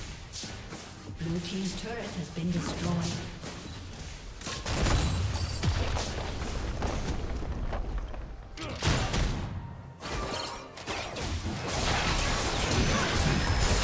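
Game spells and attacks crackle and boom in quick bursts.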